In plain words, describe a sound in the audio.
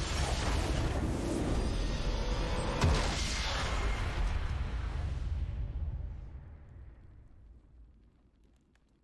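A triumphant game fanfare plays loudly and then fades away.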